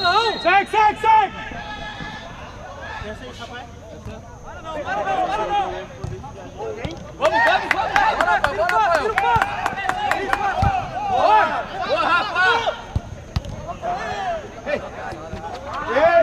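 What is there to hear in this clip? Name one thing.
Men shout and call out across an outdoor pitch.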